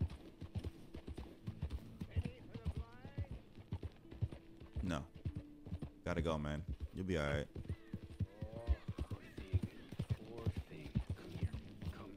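A horse's hooves thud steadily at a gallop on a dirt track.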